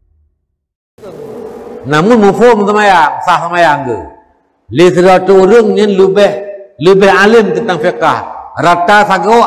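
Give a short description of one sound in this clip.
A middle-aged man speaks calmly into a microphone, lecturing in a slightly echoing room.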